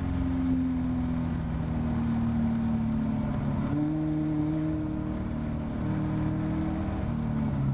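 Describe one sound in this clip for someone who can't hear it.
A race car engine roars loudly close by, its pitch dropping and jumping as the driver shifts gears.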